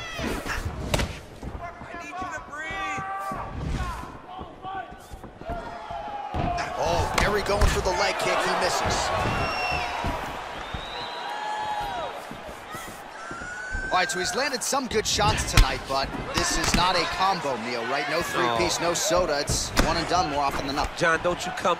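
Blows land with dull thuds as fighters punch and kick.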